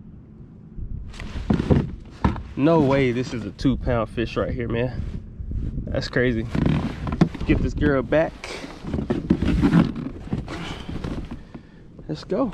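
A man talks with animation close to a microphone, outdoors.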